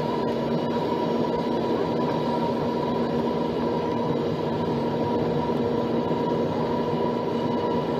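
Jet engines hum and whine steadily inside an aircraft cabin.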